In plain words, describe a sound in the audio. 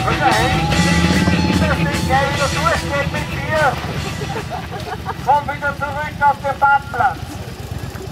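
Adult women and men talk casually nearby.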